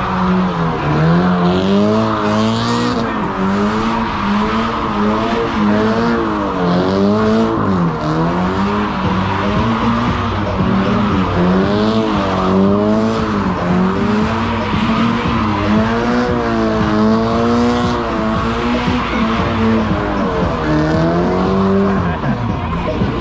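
Tyres squeal and screech on pavement.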